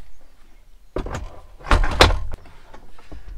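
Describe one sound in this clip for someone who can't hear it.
A wooden table top knocks and clatters into place.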